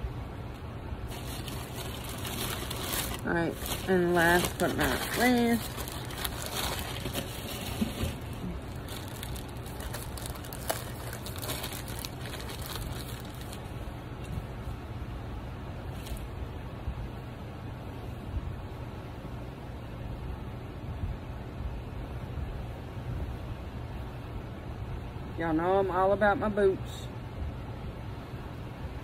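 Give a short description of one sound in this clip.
Fabric rustles and crinkles as it is handled.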